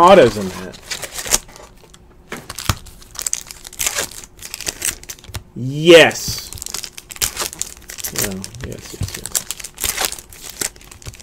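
Trading cards rustle and click as hands shuffle through a stack.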